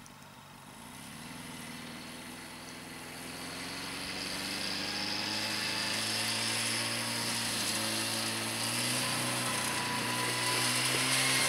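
A snowmobile engine starts, then revs and roars as the snowmobile drives off over snow.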